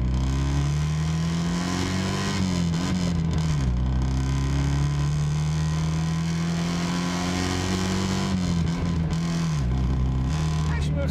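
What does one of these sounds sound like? A small car engine drones steadily, dropping in pitch as it shifts gears.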